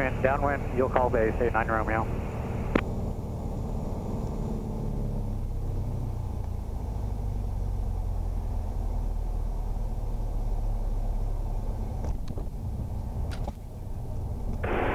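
A small airplane engine drones steadily from inside the cabin.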